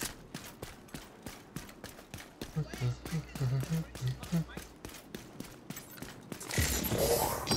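A rifle fires in quick repeated shots.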